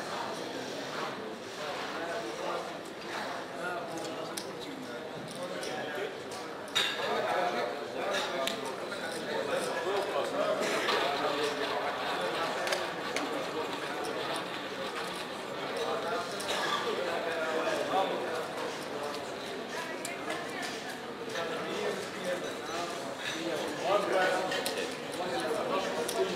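Many people chatter in a busy, noisy room.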